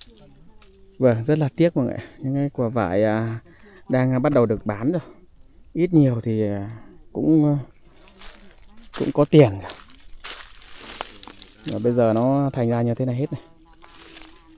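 A man speaks calmly close by.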